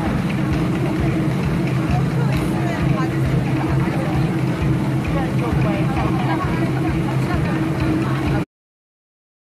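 Drummers beat a steady rhythm on hand drums.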